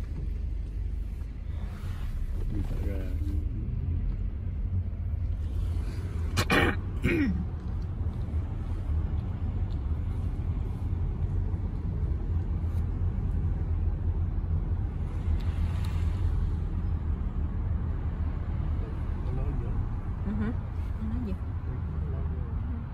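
Tyres rumble on the road.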